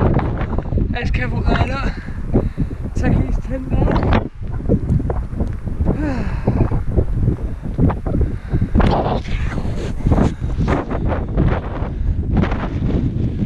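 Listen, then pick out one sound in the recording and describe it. Strong wind buffets and roars across open ground.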